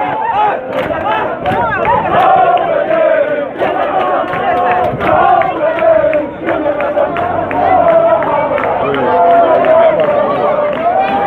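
A group of men sing loudly together in chorus.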